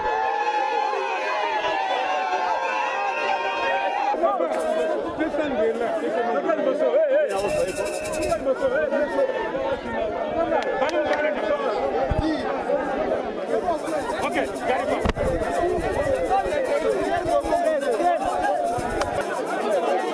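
A crowd of men and women talks and shouts at close range.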